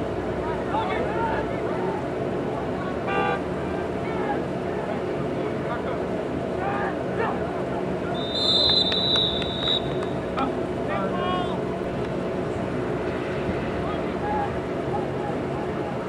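Distant young men shout and call out across an open field.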